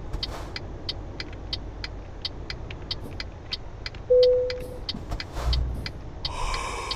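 A turn signal ticks at an even, quick pace.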